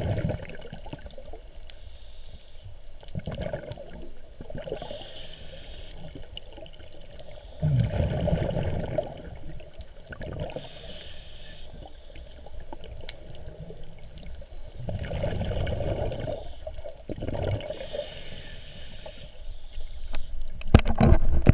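A snorkeler breathes loudly through a snorkel underwater, in slow bursts.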